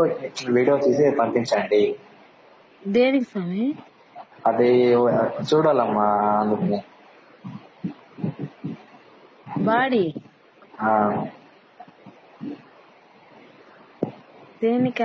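A person talks over a phone line in short bursts with pauses.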